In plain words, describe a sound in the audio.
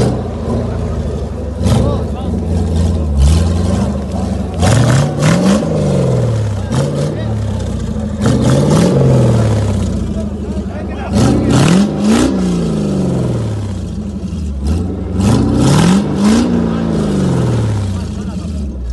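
Tyres grind and crunch over loose rocks.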